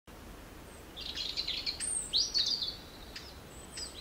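A small bird chirps and tweets.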